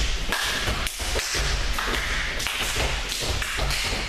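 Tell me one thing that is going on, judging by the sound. Bare feet thump on a padded mat as a young man jumps.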